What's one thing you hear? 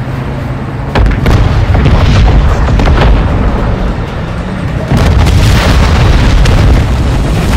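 Loud explosions boom and rumble overhead.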